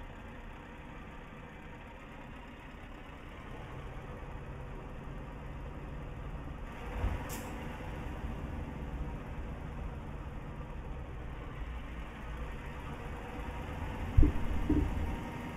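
A truck engine hums low and steady, growing slightly louder.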